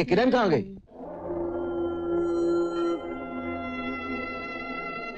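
A saxophone plays a melody.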